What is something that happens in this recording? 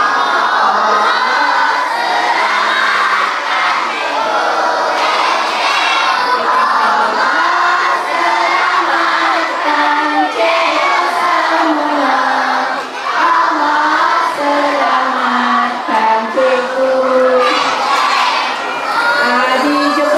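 A crowd of women and men sings together nearby.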